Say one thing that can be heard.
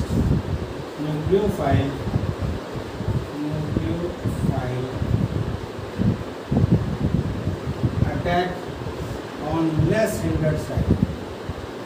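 A middle-aged man speaks calmly, as if lecturing, close by.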